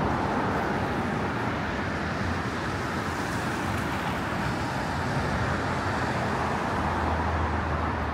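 Traffic hums steadily on a busy road nearby.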